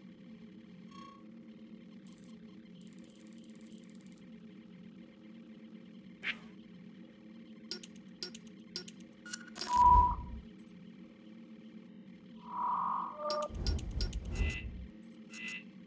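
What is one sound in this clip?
Electronic menu blips and clicks sound as options change.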